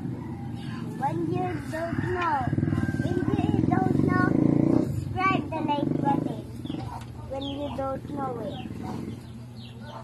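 A young child talks and babbles nearby.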